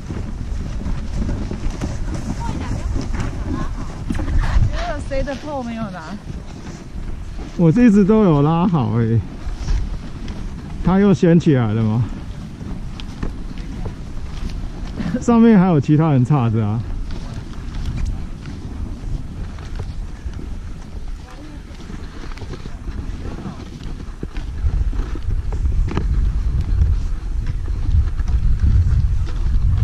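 Skis scrape and crunch over packed snow.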